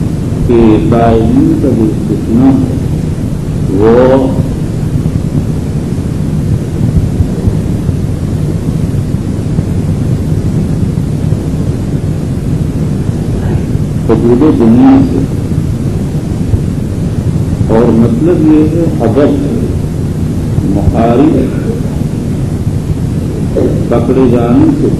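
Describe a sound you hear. An elderly man speaks slowly and with feeling over a loudspeaker, pausing often.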